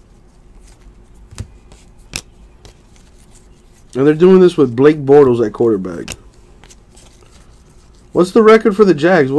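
Cards flick and rustle as they are shuffled by hand.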